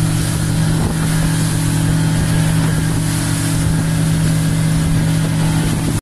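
Water rushes and splashes against a moving boat's hull.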